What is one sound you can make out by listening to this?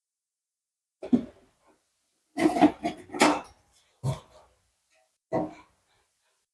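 A metal cover clatters as it is lifted off.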